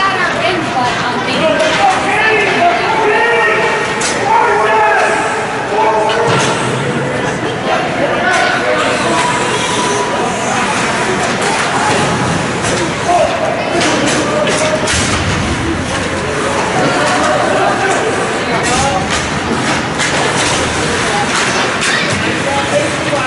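Spectators cheer and shout in an echoing rink.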